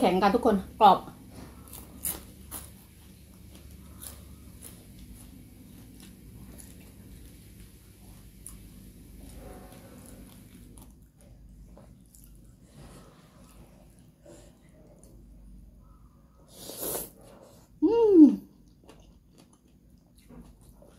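A woman chews and slurps food noisily close to a microphone.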